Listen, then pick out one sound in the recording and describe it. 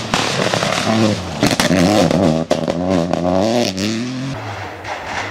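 A rally car engine revs hard and roars past close by.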